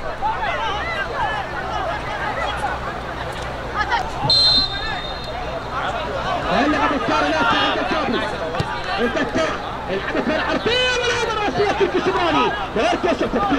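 Players shout to each other across an outdoor pitch.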